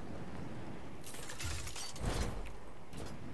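A glider snaps open with a loud flapping whoosh.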